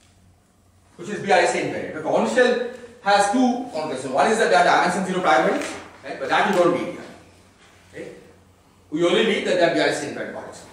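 A man lectures with animation in an echoing room.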